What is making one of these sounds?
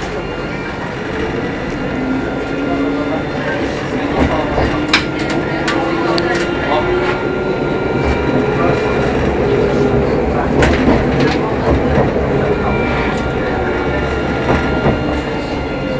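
A tram motor whines and rises in pitch as the tram pulls away.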